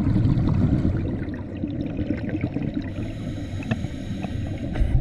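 Scuba bubbles gurgle and rumble underwater.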